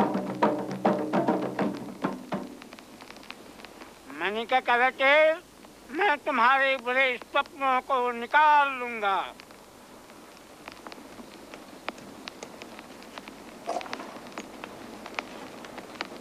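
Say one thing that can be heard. A wood fire crackles and pops nearby.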